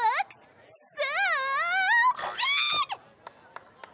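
A young woman sings out in a high, excited voice.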